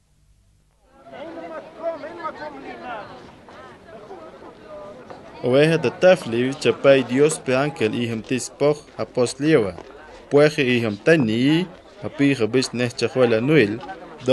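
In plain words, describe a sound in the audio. A crowd of men and women murmurs and talks.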